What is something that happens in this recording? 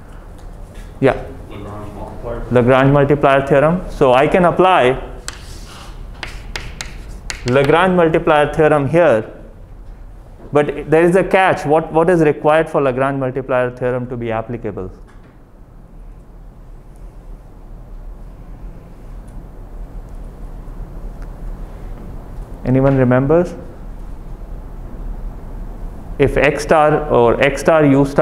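A man speaks calmly, explaining at length.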